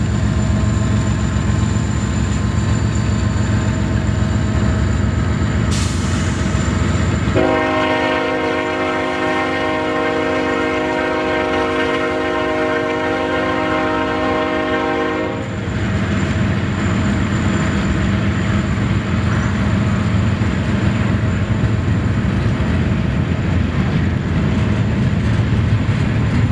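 Steel wheels clatter over the rails.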